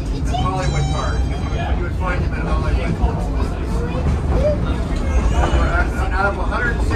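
Several adult passengers chatter nearby in a crowded car.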